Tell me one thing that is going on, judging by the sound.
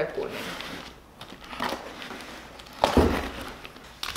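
A cardboard box is torn open.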